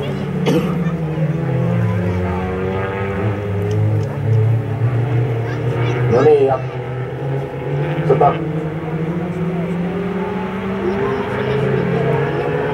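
Car engines roar and rev in the distance.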